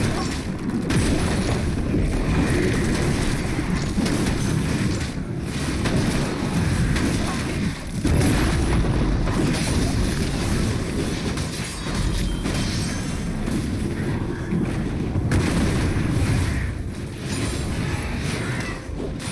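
Fantasy battle sound effects whoosh and crackle as spells are cast.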